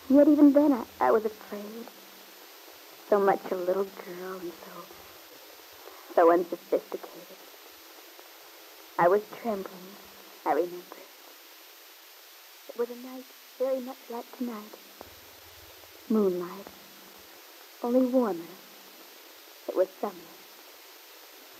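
A woman speaks calmly in short phrases.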